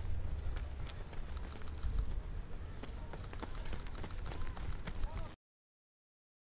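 Running footsteps patter quickly on a track outdoors.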